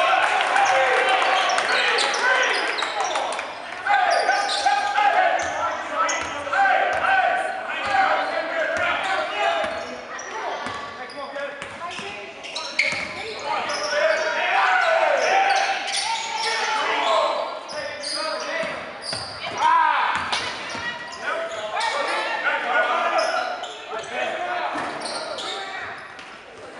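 Spectators talk and cheer in an echoing gym.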